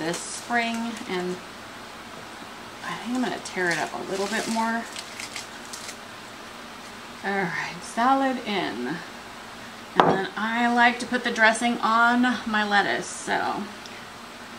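A woman talks calmly and warmly close by.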